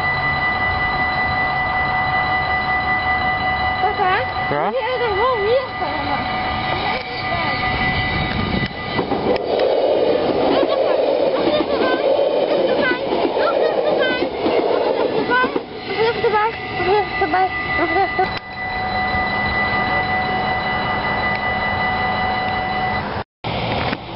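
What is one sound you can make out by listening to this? A level crossing bell rings steadily and rapidly.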